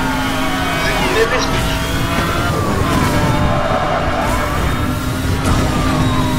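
A police siren wails up and down.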